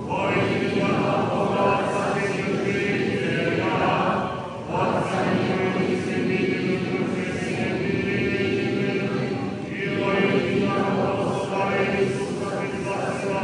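A large crowd sings a slow chant together in a big echoing hall.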